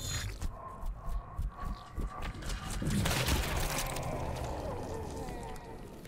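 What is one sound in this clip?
Wet flesh squelches and splatters.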